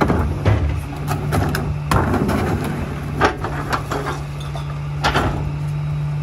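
A plastic bin lid slaps shut with a knock.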